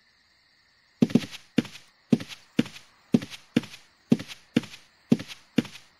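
Heavy footsteps thud on the ground at a steady walking pace.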